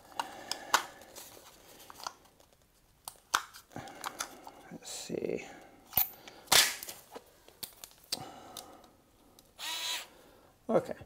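Metal tools clink and rustle on a plastic sheet.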